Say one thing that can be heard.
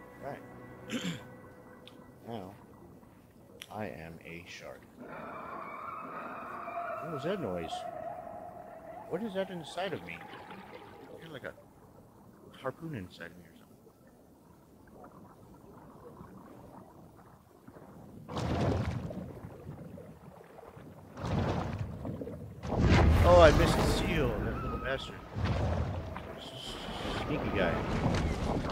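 A shark swims with a muffled underwater whoosh.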